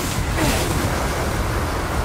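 Fireballs explode with loud bursts.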